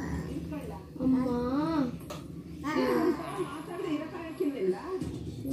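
A baby babbles and coos.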